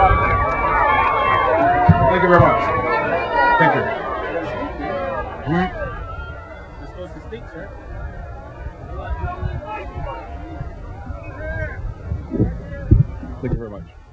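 A man speaks into a microphone over a loudspeaker, outdoors.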